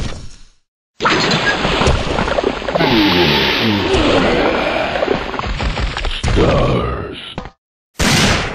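A monster growls and roars loudly.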